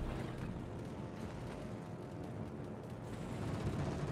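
Aircraft engines drone overhead.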